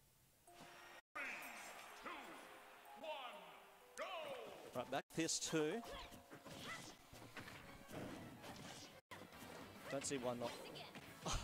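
Video game fighting sounds clash and whoosh.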